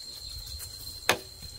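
A bamboo pole knocks against wood.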